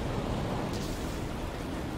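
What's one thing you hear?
A jet thruster roars as a character flies upward.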